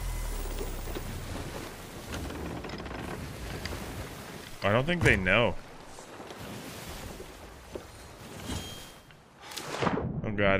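Waves wash and splash against a ship.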